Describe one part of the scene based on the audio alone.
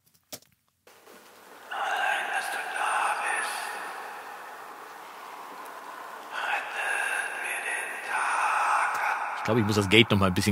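A layered music track plays back steadily.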